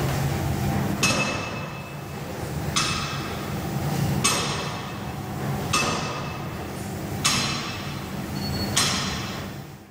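Metal weight plates clank sharply, again and again.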